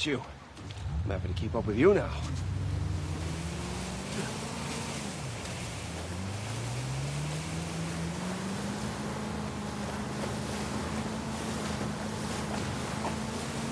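A boat's outboard motor starts and drones steadily, rising in pitch.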